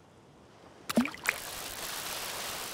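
A fishing float splashes into water.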